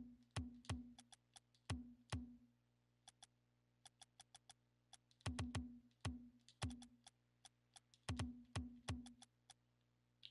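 Short game menu clicks tick quickly as items are picked.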